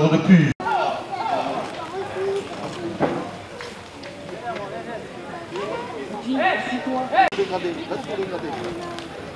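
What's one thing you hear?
A crowd of spectators chatters and shouts.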